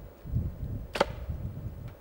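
A rifle fires once with a sharp crack.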